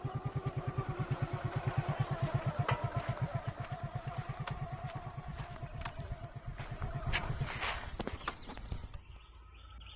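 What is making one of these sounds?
A tractor engine chugs nearby.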